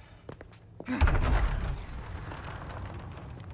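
Heavy wooden doors creak and swing open.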